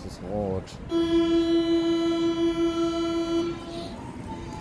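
A train's door warning beeps steadily.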